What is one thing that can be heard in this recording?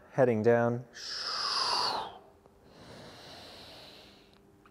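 A young man breathes in and out deeply.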